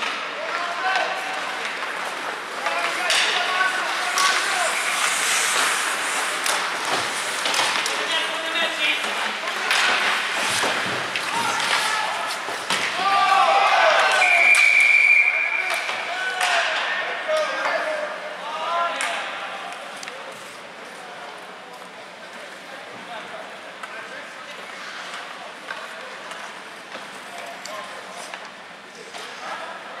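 Skates scrape and hiss on the ice.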